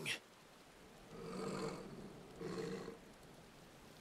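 A wolf growls.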